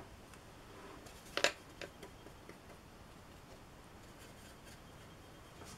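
A brush taps and scrapes against a plastic paint palette.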